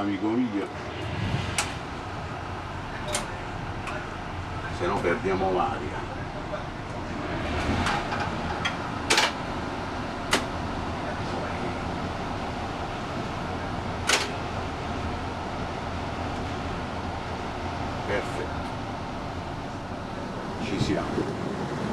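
A locomotive engine rumbles steadily.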